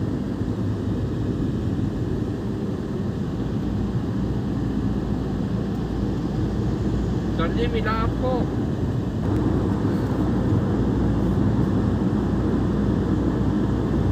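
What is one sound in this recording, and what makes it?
A vehicle's engine hums steadily with road noise from inside the cabin.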